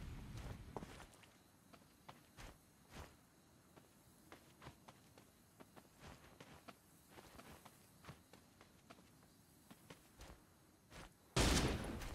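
Footsteps patter on grass and dirt.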